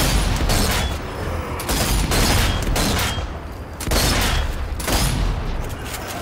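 Rifle shots crack and boom in quick bursts.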